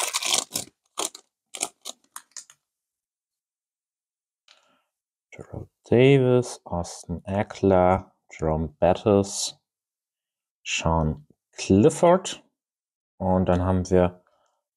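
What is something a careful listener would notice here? Stiff trading cards slide and tap against each other.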